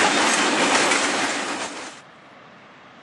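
Freight wagons rumble and clatter loudly past close by.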